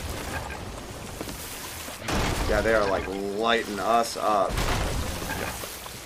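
Water sloshes and splashes.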